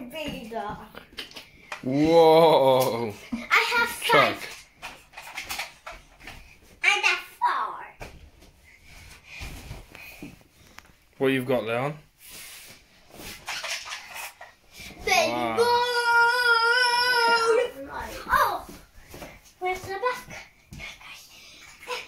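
A small boy babbles and squeals nearby.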